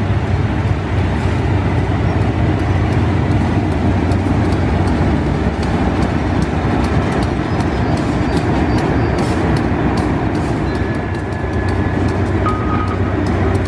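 Train wheels click on the rails.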